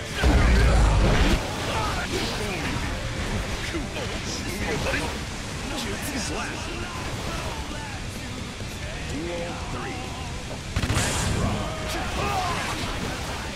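Heavy blows thud and crash.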